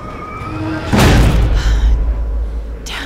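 A heavy wooden door slams shut with a loud bang.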